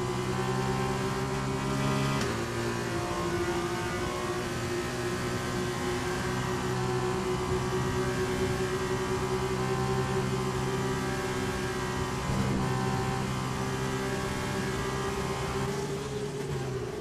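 A racing car engine whines at high revs, held steady at top speed.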